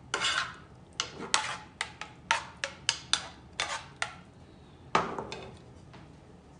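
A pan scrapes and clatters against a stove's hotplate.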